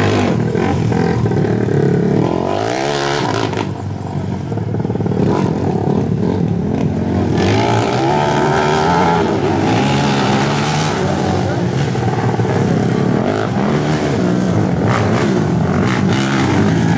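A quad bike engine buzzes and revs as it races over a dirt track.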